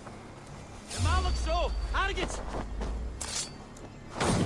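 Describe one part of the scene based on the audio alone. A blade stabs into a body with a sharp thud.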